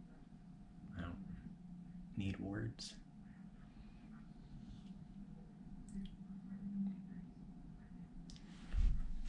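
A man handles food with small clicks and taps.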